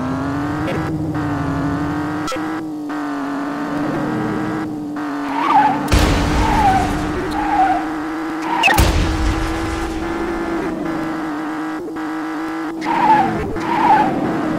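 A car engine roars steadily at high speed.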